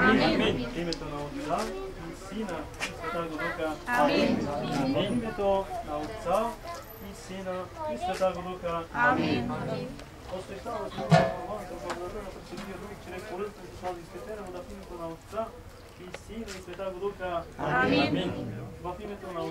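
A man chants a prayer in a steady, sing-song voice.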